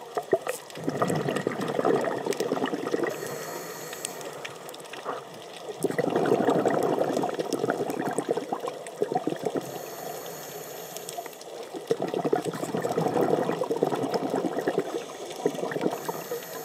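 Scuba bubbles gurgle and rumble in bursts underwater.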